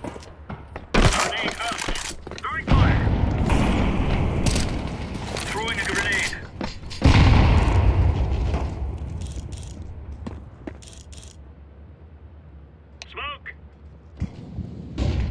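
A rifle fires loud booming shots in a large echoing hall.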